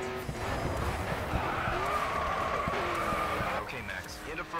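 Tyres screech as a car slides through a turn.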